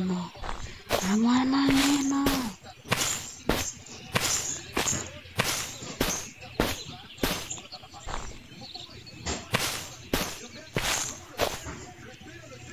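Footsteps thud steadily on rough ground.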